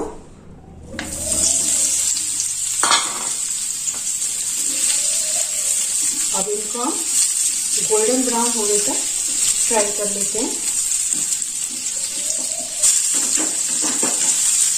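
Oil sizzles steadily in a frying pan.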